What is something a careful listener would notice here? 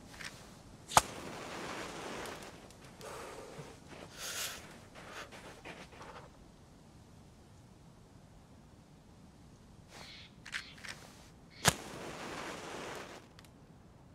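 A match strikes against a box and flares up.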